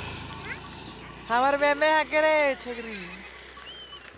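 A goat bleats loudly nearby.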